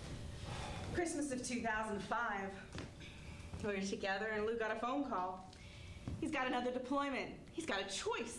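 A middle-aged woman speaks loudly and with animation, close by.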